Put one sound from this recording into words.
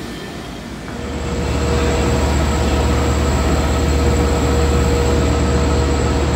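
Train wheels screech on the rails.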